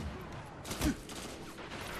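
A rifle fires a loud shot in a game.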